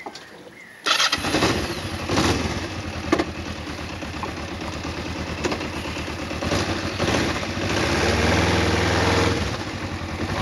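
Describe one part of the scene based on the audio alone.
A motorcycle engine starts up and idles with a low rumble.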